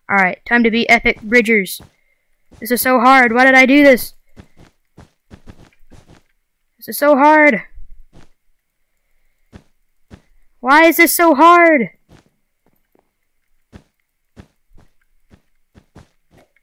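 Blocks are placed one after another with soft, quick clicks.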